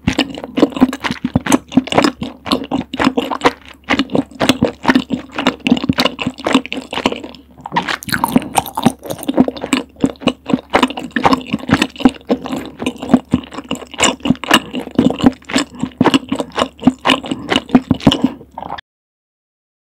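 A young woman chews wet, sticky food with loud smacking and squelching close to a microphone.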